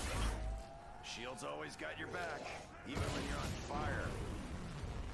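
Monsters growl and snarl close by.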